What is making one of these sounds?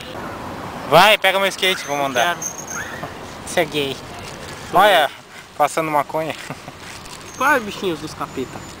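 A young man talks close by, casually.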